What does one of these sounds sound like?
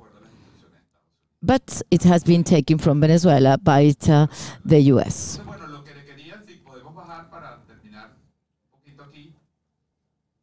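An elderly man speaks calmly into a microphone, heard through an online call.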